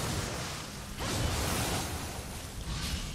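A fiery blast bursts with a crackle of sparks.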